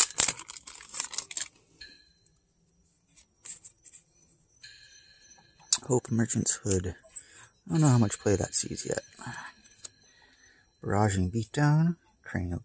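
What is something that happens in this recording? Playing cards slide and flick against each other as they are handled.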